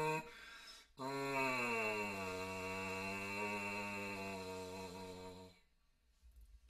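A man buzzes a long, wavering pitched note into a brass mouthpiece close by.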